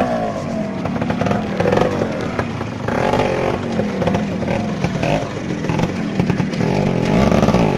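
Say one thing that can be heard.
Stones clatter and crunch under tyres.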